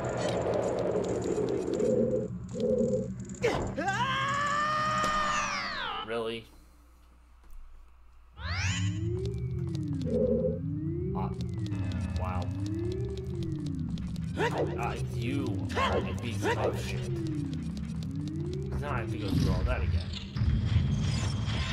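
Video game music plays, then stops briefly and starts again.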